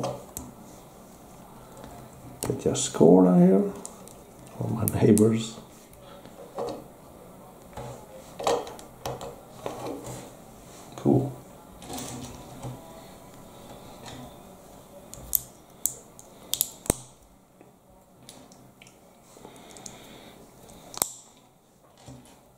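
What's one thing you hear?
Small plastic bricks click and snap together.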